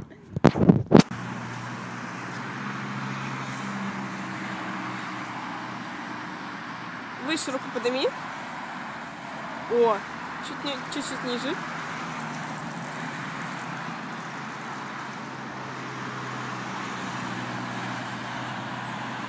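Cars rush past on a road nearby.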